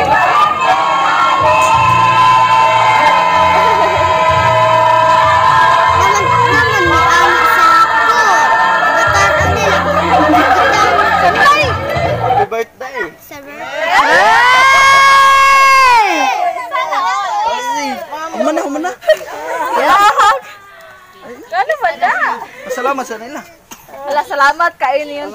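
A young woman laughs with delight close by.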